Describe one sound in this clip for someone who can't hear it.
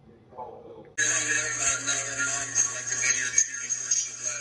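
A car engine roars through a television speaker.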